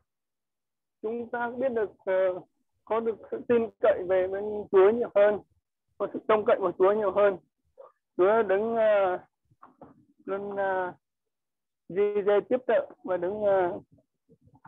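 A woman speaks over an online call, in short bursts with pauses.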